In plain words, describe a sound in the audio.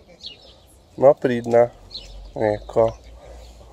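A dog barks sharply a few times.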